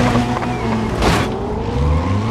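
A car crashes with a loud bang.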